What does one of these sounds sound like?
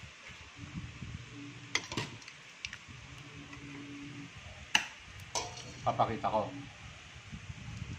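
A metal ladle scrapes and clinks against a metal pot.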